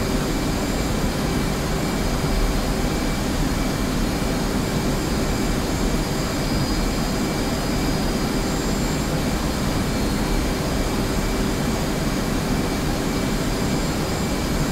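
A jet engine roars steadily with a constant whine.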